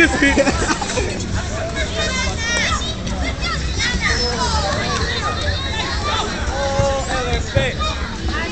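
Young men talk and shout excitedly nearby, outdoors.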